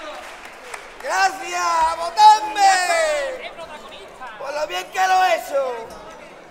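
A man sings loudly through a microphone on stage.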